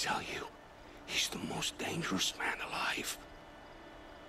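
A man speaks with a rough, strained voice.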